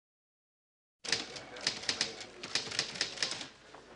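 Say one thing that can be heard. Fingers tap quickly on computer keys.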